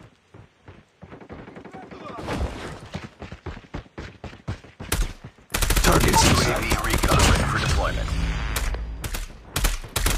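Automatic gunfire rattles in rapid bursts, close by.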